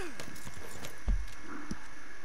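A body thuds heavily onto the ground.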